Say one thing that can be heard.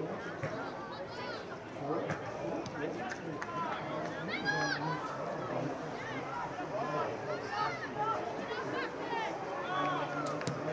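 Young players shout and call out to each other outdoors.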